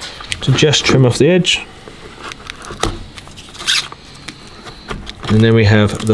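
A knife clicks and scrapes against hard plastic.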